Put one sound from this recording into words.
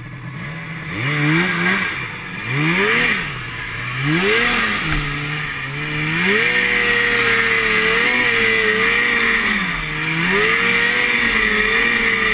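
A snowmobile engine roars close by, revving up and down.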